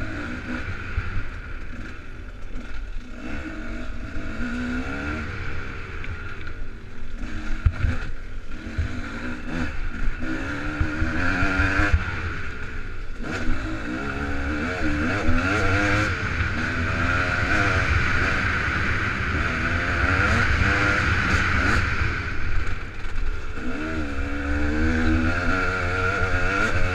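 Wind rumbles low and steady against a microphone.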